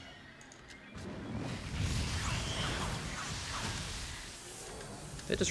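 A magic spell crackles and hums with a rushing shimmer.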